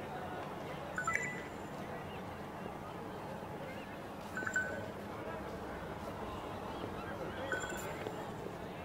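A short electronic chime sounds a few times.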